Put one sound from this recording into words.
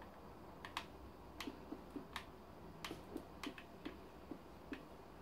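Footsteps tap on stone at an uneven walking pace.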